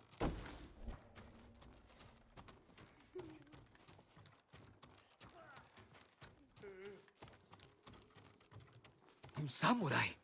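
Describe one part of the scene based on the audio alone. Footsteps creak on a wooden floor.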